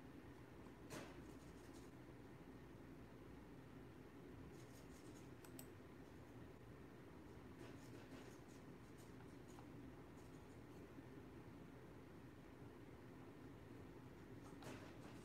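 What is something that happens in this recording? Hands tap and shuffle small objects on a table.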